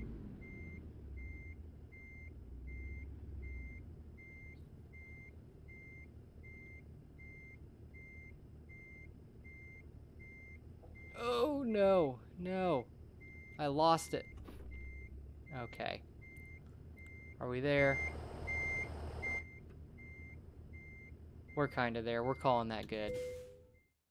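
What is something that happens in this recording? A truck's reversing alarm beeps at a steady pace.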